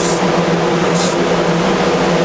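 A spray gun hisses in short bursts.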